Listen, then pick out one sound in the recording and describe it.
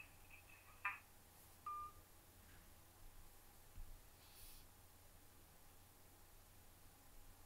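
A man slowly blows out a long breath close by.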